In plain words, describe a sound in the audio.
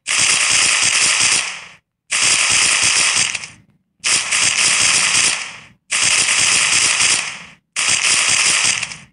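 A gun fires in rapid bursts with short pauses.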